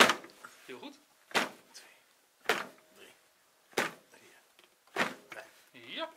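Sharp thumps land on a training dummy's back at a steady pace.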